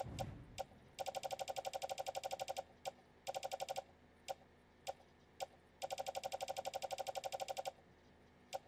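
Short electronic clicks tick rapidly in quick bursts.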